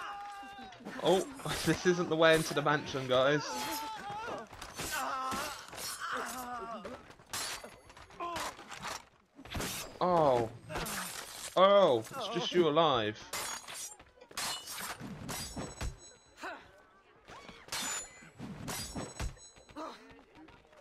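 Swords clash and ring in quick, sharp strikes.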